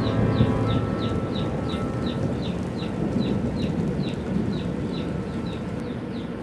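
Small caged birds chirp in a quick, even rhythm.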